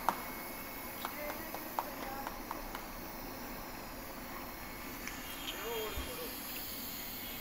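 Small clicks and ticks sound from a machine nearby.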